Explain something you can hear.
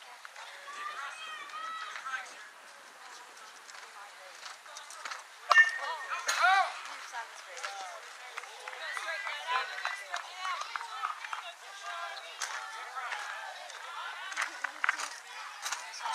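Young players shout and cheer across an open field.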